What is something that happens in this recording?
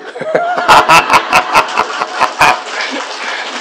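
An elderly man laughs heartily into a microphone.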